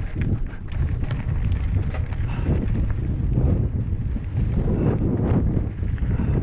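Wind rumbles loudly against the microphone outdoors.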